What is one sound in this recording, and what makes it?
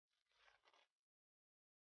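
Plastic wrap crinkles softly.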